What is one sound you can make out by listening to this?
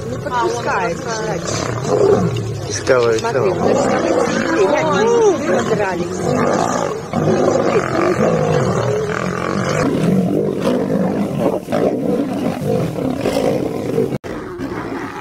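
Male lions snarl and roar while fighting.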